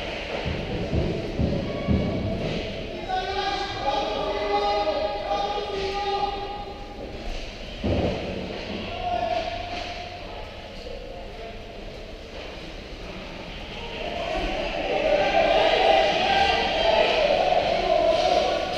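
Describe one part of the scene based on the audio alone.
Players shout to each other across a large echoing rink.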